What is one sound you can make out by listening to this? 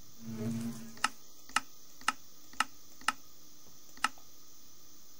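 Menu buttons click sharply, one after another.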